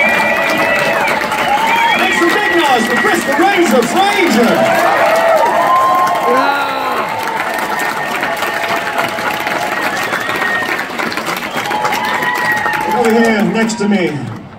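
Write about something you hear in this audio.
A crowd cheers and claps loudly.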